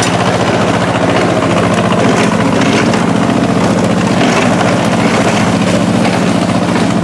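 A small tractor engine chugs steadily close by.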